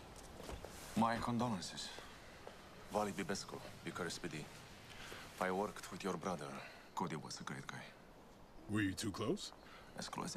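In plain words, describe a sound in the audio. A second man answers in a low, calm voice, close by.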